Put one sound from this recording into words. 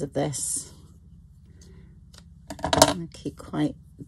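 Scissors snip through string.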